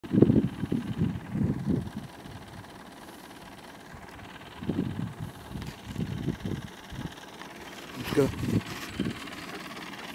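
Wind gusts buffet the microphone outdoors.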